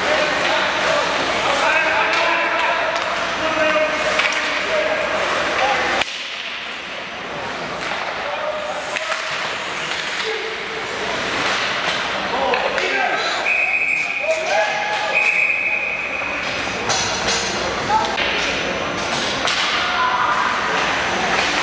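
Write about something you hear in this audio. Spectators chatter nearby.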